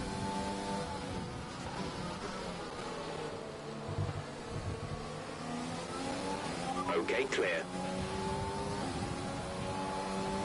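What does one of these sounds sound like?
A racing car engine whines, rising and falling in pitch as the car shifts gears.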